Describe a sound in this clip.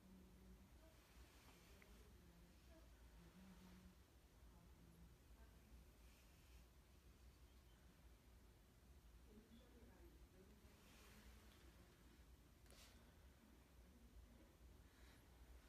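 A young woman breathes in and out deeply and slowly.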